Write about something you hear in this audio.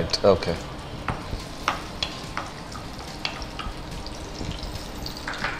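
A spoon taps and scrapes in a steel wok.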